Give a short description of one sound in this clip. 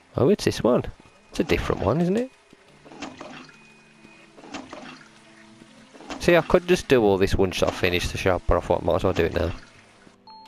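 A toilet flushes with rushing, swirling water.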